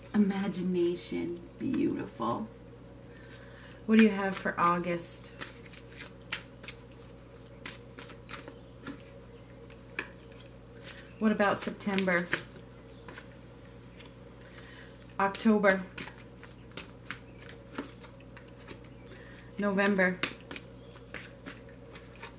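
Playing cards are shuffled, flicking and rustling softly.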